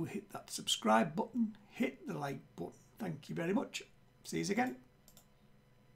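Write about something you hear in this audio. A middle-aged man talks calmly and clearly into a microphone.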